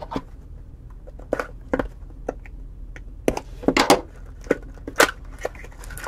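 A knife slits through cardboard tape with short scraping sounds.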